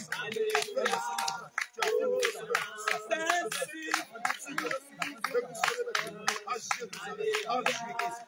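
A man prays aloud with fervour, close by.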